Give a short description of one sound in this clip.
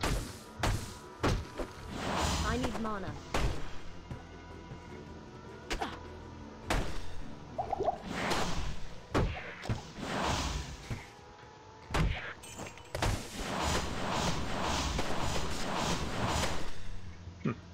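Game spell blasts crackle and whoosh again and again.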